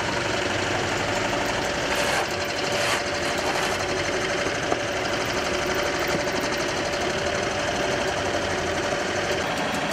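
Grain pours and rattles through a mill.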